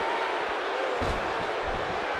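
A body thuds onto a wrestling ring canvas.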